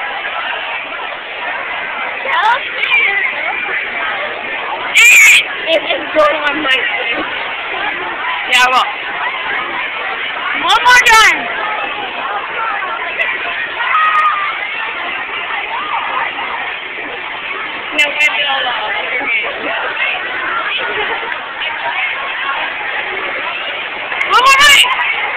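Young people chatter and laugh close by.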